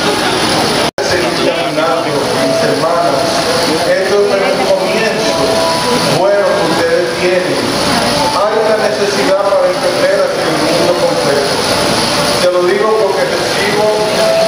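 A middle-aged man speaks calmly into a microphone over loudspeakers.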